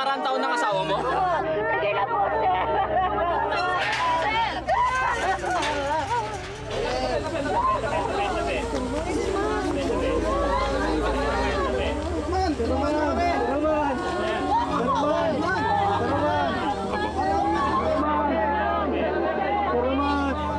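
A crowd of young men and women shout and call out excitedly, close by.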